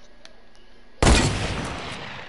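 A gun fires loudly in a video game.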